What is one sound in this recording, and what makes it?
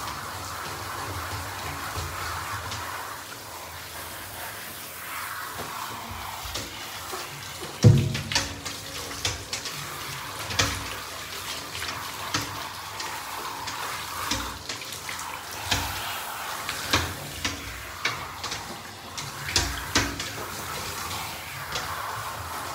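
Water sprays from a shower hose and splashes.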